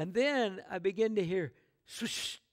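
An elderly man speaks with feeling through a microphone.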